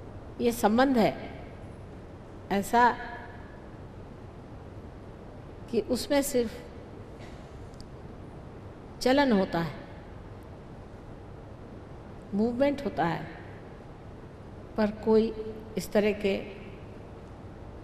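A middle-aged woman speaks slowly and calmly into a microphone, in short phrases with long pauses.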